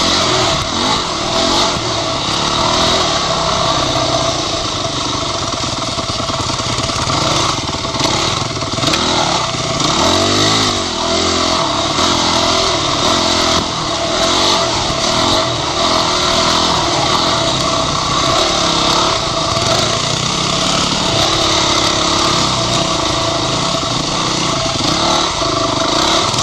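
A dirt bike engine revs and roars up close, rising and falling as it rides.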